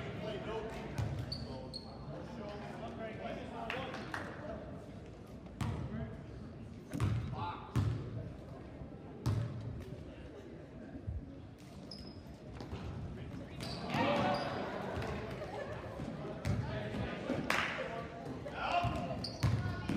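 A basketball bounces on a wooden gym floor.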